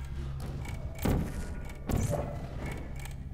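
A sci-fi gun fires with sharp whooshing bursts.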